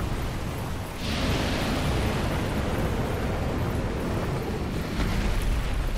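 Flames roar and crackle across the ground.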